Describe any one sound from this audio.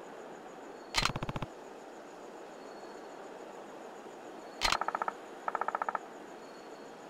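Quick electronic blips chirp in short bursts.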